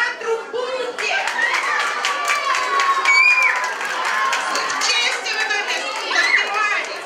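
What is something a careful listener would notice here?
A crowd of young children shout and chatter loudly.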